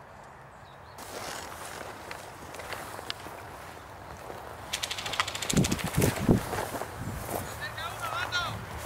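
Dry grass and bushes rustle as someone moves through them.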